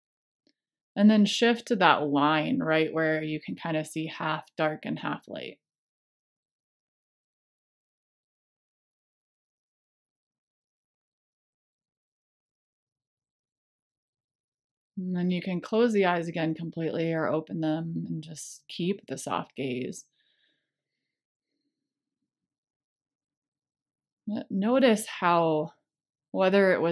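A woman speaks calmly through a microphone over an online call, in pauses.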